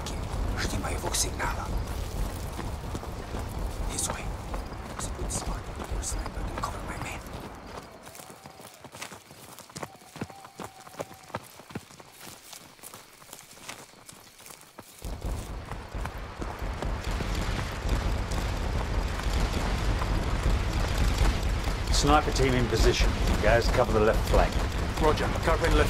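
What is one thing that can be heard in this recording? Footsteps crunch on a rough path.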